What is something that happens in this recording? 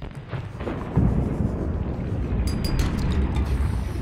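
Rock cracks and breaks apart with a low rumble.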